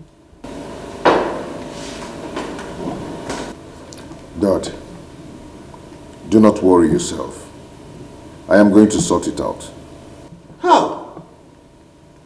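An elderly man speaks firmly nearby.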